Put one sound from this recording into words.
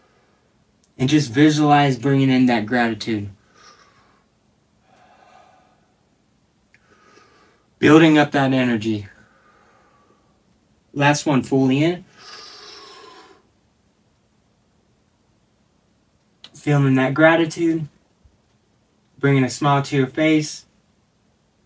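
A man speaks calmly and close by in short phrases.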